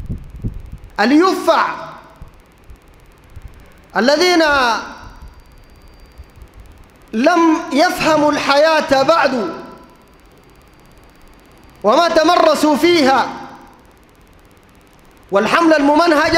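A man preaches forcefully into a microphone in bursts, heard through loudspeakers with echo.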